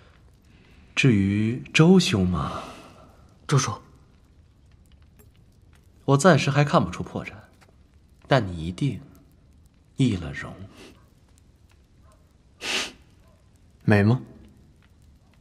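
A man with a low voice speaks quietly, close by.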